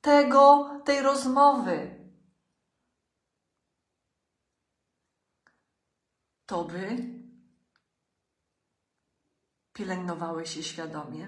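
A middle-aged woman speaks close up with animation, in short bursts with pauses.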